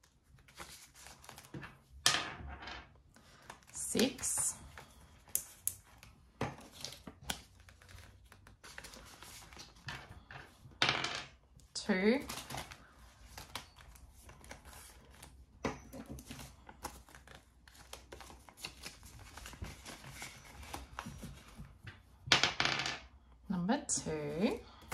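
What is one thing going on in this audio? Plastic sleeves crinkle and rustle as pages are handled.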